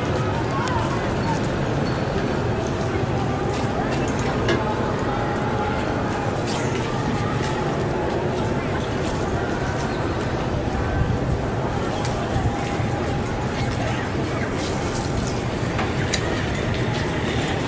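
A large crowd of men chants and murmurs outdoors.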